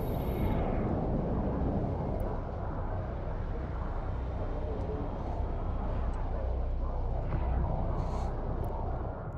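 A deep engine rumble drones steadily.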